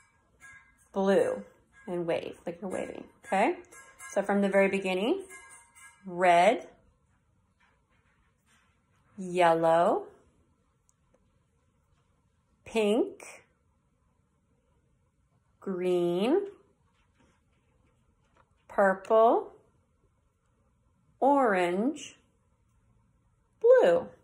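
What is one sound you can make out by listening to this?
A young woman speaks calmly and close by, saying single words with pauses between them.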